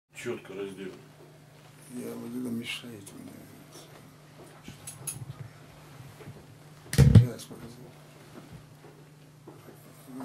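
An elderly man speaks slowly and quietly, close to a microphone.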